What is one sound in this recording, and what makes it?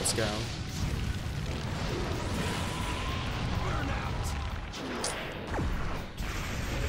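Deep rumbling blasts and whooshes roar steadily.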